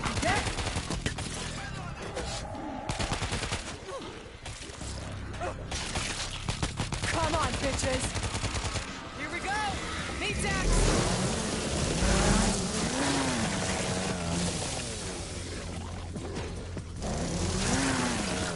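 Zombies snarl and groan.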